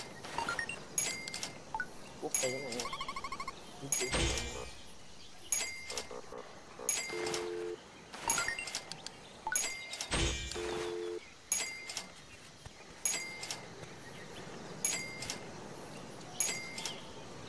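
A short electronic chime rings over and over at a steady pace.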